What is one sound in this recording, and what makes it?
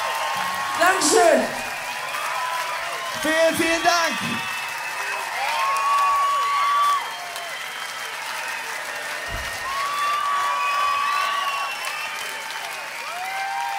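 A large crowd cheers and whistles loudly in an echoing hall.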